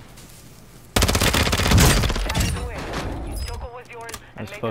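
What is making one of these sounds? Gunfire rattles in a quick burst, close by.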